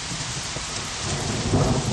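Rain patters steadily on pavement.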